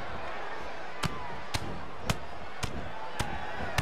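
Sharp slaps and thuds of blows land in quick succession.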